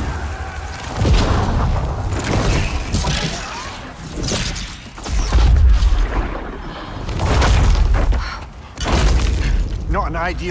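Heavy blasts roar and boom in loud bursts.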